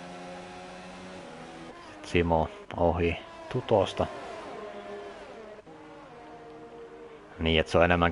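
A racing car engine whines steadily at high revs.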